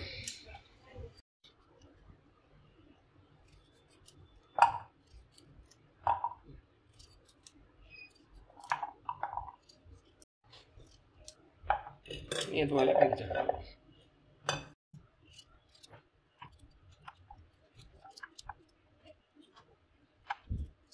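A knife slices through firm pumpkin with soft crunching cuts.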